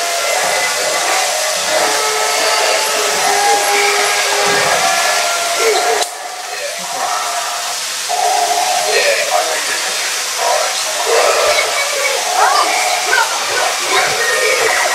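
Toy robots whir and beep with small electronic sounds.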